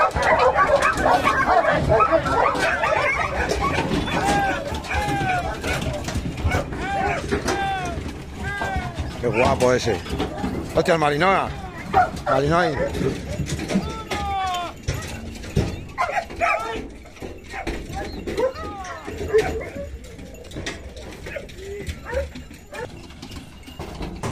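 Many dogs bark and yelp excitedly close by.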